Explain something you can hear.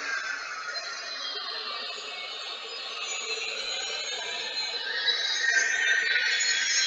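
A jet engine roars and whines steadily, rising in pitch near the end.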